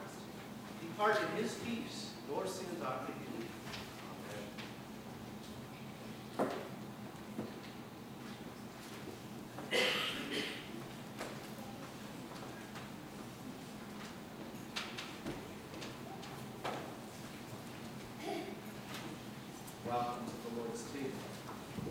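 A woman speaks calmly into a microphone in a reverberant hall.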